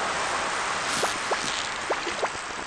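A fishing reel clicks as a line is reeled in.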